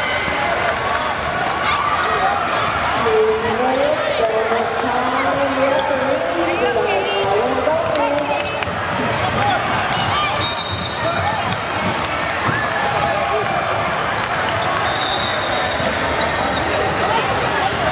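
Young girls shout and call out across a large echoing gym.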